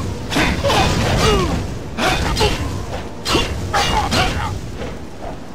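A magic fire spell roars and crackles in blasts.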